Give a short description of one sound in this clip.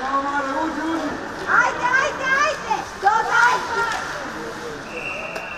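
Spectators nearby shout and cheer loudly in an echoing rink.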